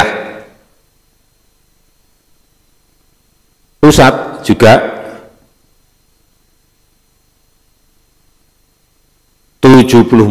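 A man speaks calmly into a microphone in short bursts with long pauses.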